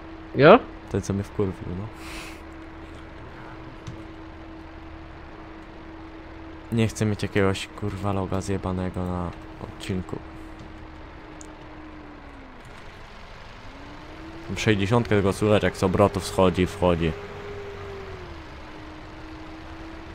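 A tractor engine hums steadily, dips low briefly, then picks up again.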